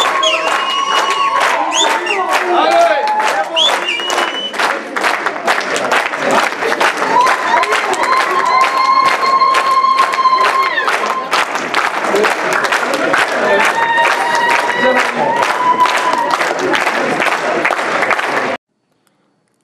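A crowd claps rapidly.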